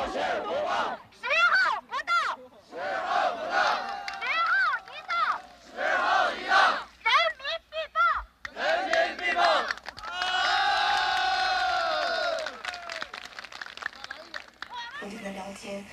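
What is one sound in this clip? A crowd chants in unison.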